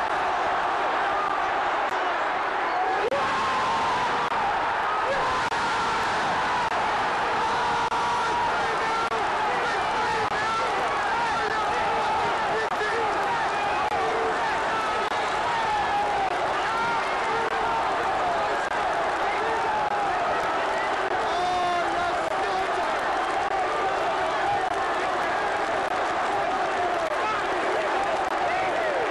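A large stadium crowd chants and sings loudly together, echoing around the ground.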